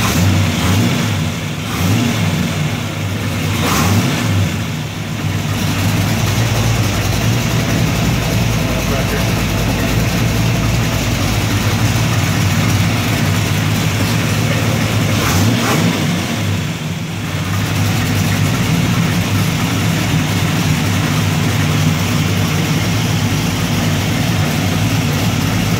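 A large engine roars loudly and steadily at close range.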